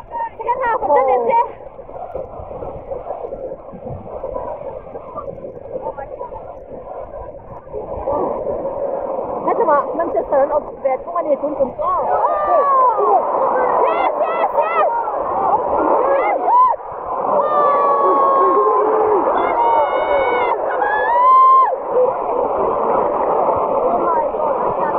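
A large stadium crowd murmurs and shouts all around.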